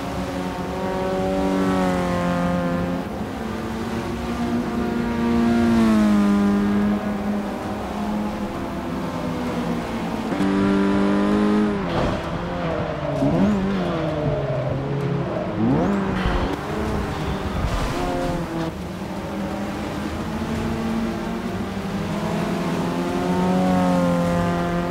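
A car engine revs loudly, rising and dropping in pitch as gears shift.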